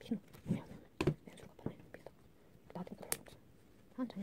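Small plastic pieces click and tap against each other.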